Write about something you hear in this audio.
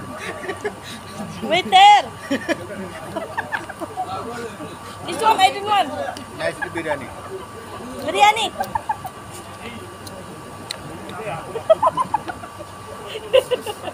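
Several adults talk with animation close by.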